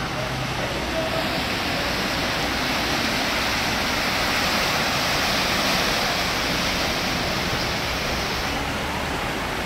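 A van splashes loudly through deep floodwater.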